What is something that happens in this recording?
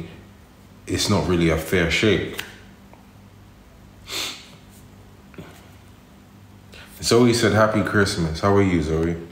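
A man speaks calmly and close to a phone microphone, in short bursts with pauses.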